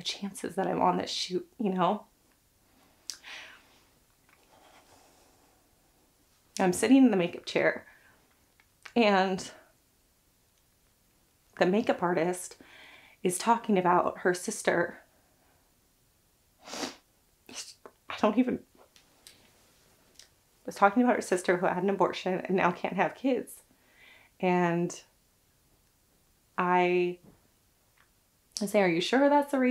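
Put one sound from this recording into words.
A young woman talks calmly and closely into a microphone, with pauses.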